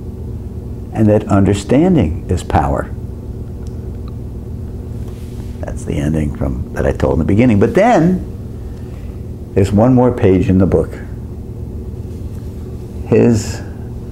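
An elderly man talks with animation close to a microphone, in bursts between pauses.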